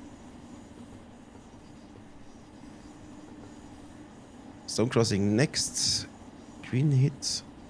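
A train hums and rumbles steadily as it rolls along.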